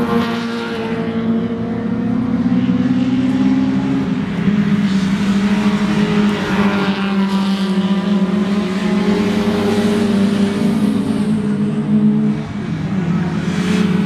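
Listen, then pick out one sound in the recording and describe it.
Racing car engines roar loudly, revving and changing pitch as the cars pass close by.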